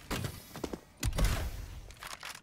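A body lands with a heavy thump.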